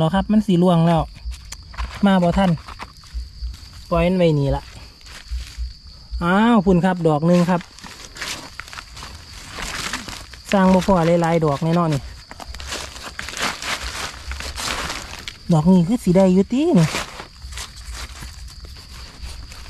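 A knife slices through a soft mushroom.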